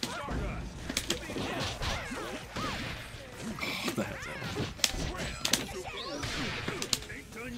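Sharp hits and thuds from a fighting game land in quick bursts.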